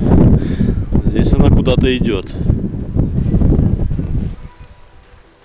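Wind rushes and buffets outdoors.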